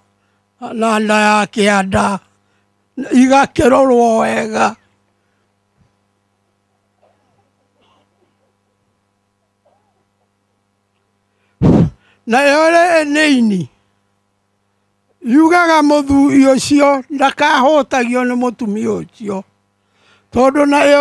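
An elderly man speaks with animation into a microphone, heard through a loudspeaker.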